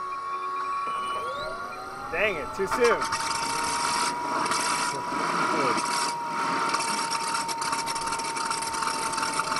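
A model plane's motor whirs up and hums steadily.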